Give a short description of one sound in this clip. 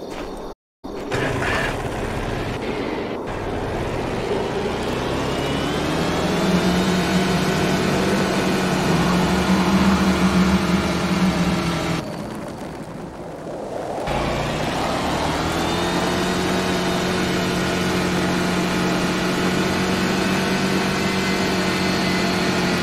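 A quad bike engine roars and hums steadily, rising in pitch as it speeds up.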